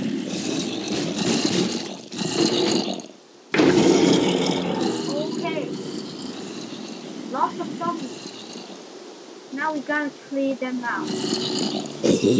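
Zombies groan nearby.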